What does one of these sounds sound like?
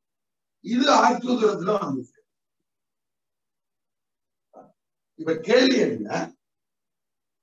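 A young man speaks clearly and closely, explaining.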